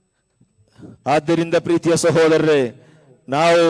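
A young man sings a melodic chant loudly into a microphone, heard through loudspeakers.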